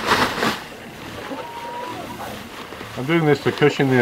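Grain pours and patters out of a sack.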